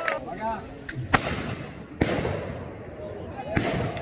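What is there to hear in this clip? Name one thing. A field gun fires a loud shot that echoes away.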